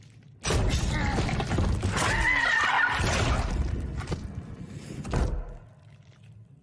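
Wet flesh squelches and tears loudly, then fades.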